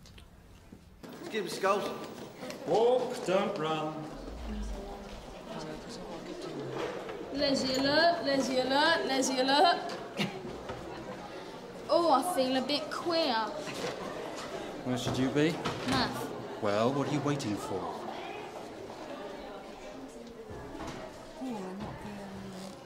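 Children chatter and call out in an echoing hallway.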